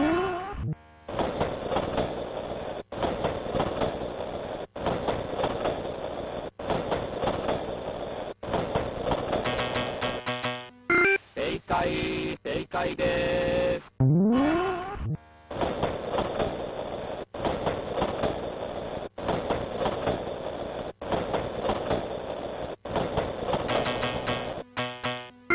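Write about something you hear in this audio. A train rumbles past with a steady rattle.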